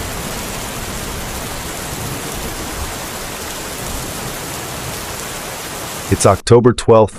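Floodwater rushes and roars steadily.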